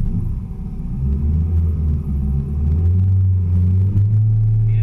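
A car engine revs up loudly.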